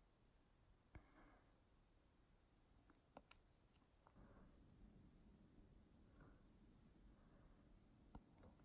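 A person breathes softly close by.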